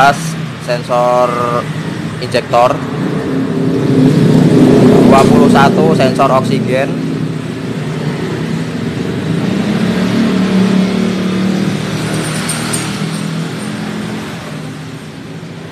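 A scooter engine idles with a steady low hum.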